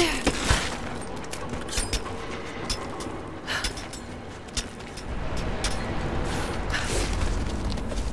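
Hands and feet scrape against rock as someone climbs.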